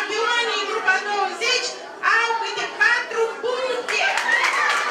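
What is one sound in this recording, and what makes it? An elderly woman reads out through a microphone in a large echoing hall.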